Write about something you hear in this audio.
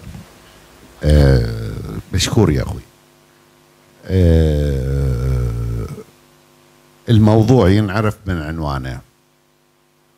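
An elderly man speaks slowly into a handheld microphone.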